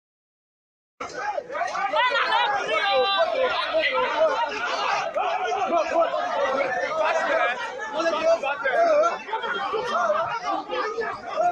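A crowd of men shout and argue loudly outdoors.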